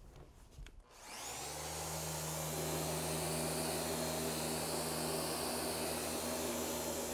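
An orbital sander spins up and whirs loudly, sanding wood.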